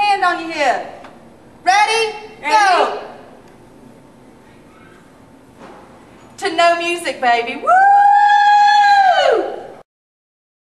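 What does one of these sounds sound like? A young woman sings out loudly and playfully nearby.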